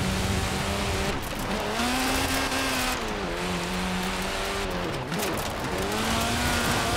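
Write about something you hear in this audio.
A car engine revs up and down as gears shift.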